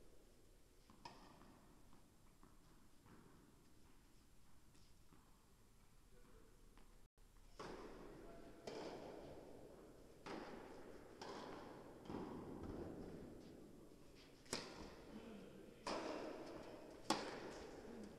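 A tennis ball is struck by a racket, echoing in a large indoor hall.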